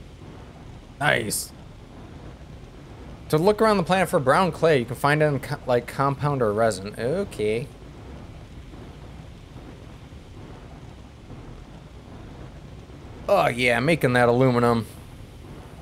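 A man talks into a microphone in short, lively bursts.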